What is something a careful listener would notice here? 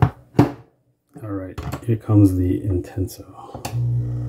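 A glass clinks as it is set down.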